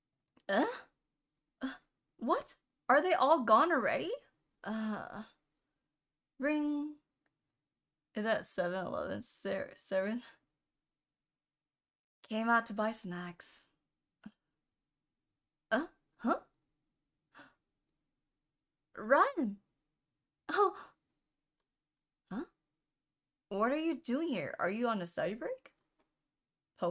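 A young woman reads aloud and talks with animation into a close microphone, in short bursts with pauses.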